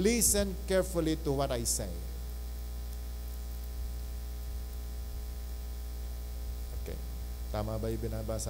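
A middle-aged man speaks with emphasis into a microphone, heard through loudspeakers, pausing between phrases.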